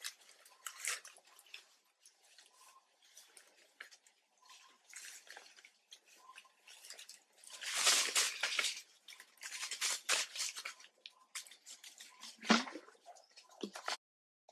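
Dry leaves rustle and crackle as small animals move over them.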